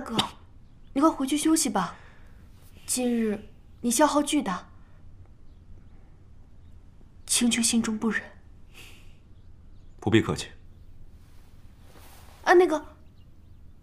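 A young man speaks calmly and softly, close by.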